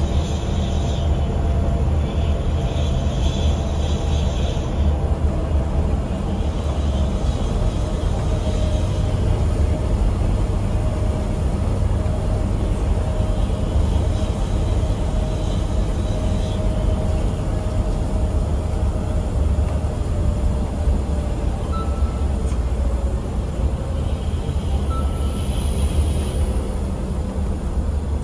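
Tyres roll on the road with a steady hiss.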